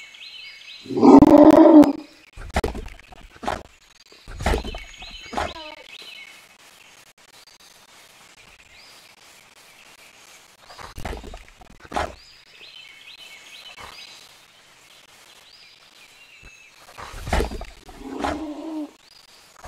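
A wild dog yelps and growls close by.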